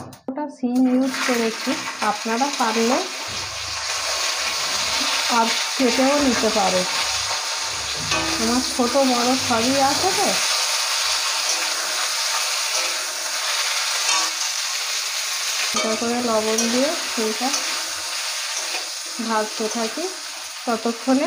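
Hot oil sizzles loudly in a pan.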